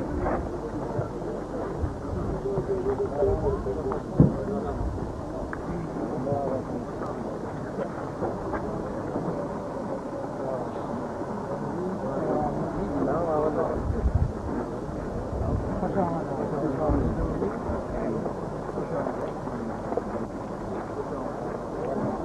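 A crowd of men murmurs and talks nearby outdoors.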